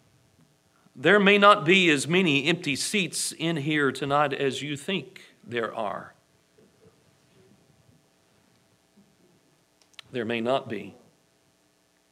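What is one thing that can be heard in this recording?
A man preaches through a microphone in a calm, measured voice, with pauses.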